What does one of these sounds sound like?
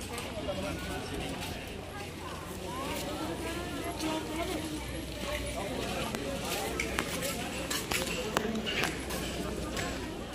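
A crowd of people talks in the distance outdoors.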